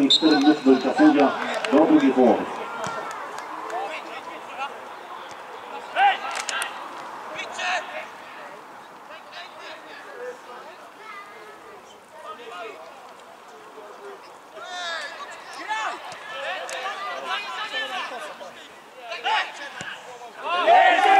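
Players shout to each other across an open pitch outdoors.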